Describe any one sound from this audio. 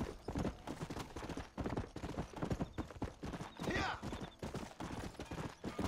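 Horse hooves clop quickly on a dirt path.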